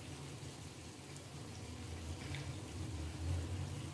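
Oil sizzles in a frying pan.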